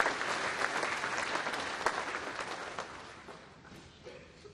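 An audience applauds in a large echoing hall, then the clapping fades away.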